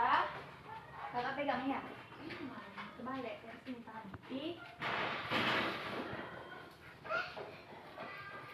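A young woman speaks gently to a child nearby.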